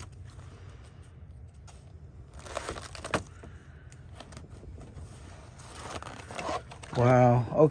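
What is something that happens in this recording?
Plastic binder pages rustle and crinkle as they are turned.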